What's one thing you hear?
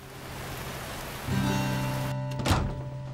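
Rain patters steadily on an umbrella outdoors.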